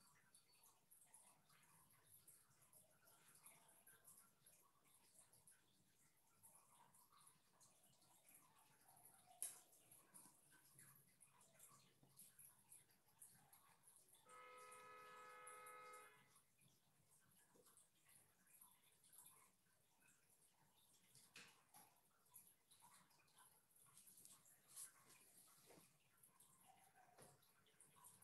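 A brush dabs and scratches softly on paper.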